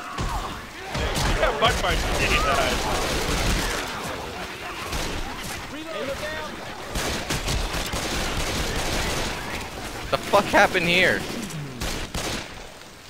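Pistols fire in rapid bursts of loud shots.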